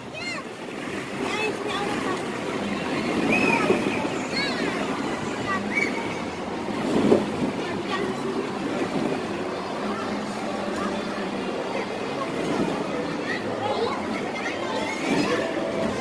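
Children shout and squeal while playing.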